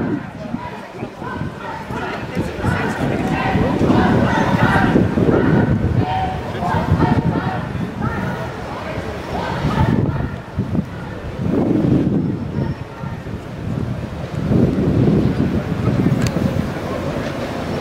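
A crowd of marchers chants loudly in the open air.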